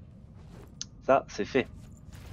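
Soft menu chimes ring out.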